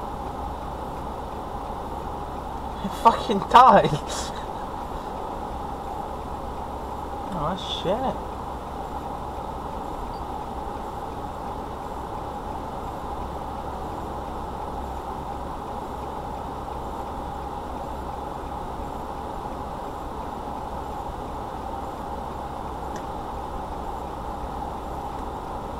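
A car engine idles steadily close by.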